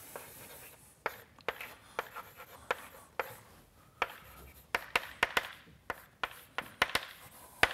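Chalk taps and scrapes sharply on a blackboard.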